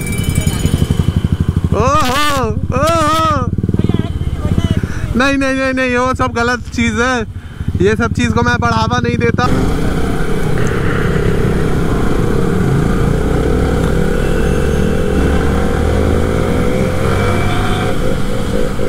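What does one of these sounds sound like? A motorcycle engine hums steadily and revs up at times.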